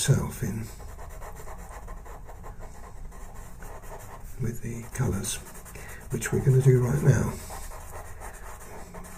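A pencil scratches softly across paper in short, quick strokes.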